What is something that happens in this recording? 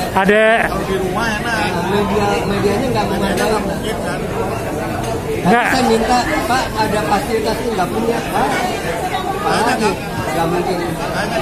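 Several men chatter in the background.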